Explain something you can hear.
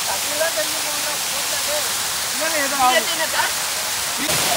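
Young men shout and laugh close by over the rushing water.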